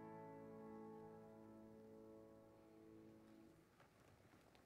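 A choir sings a held chord through a microphone in a large room, then stops.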